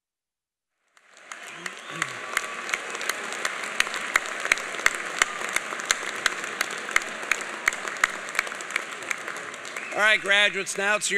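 A large crowd applauds in a large hall.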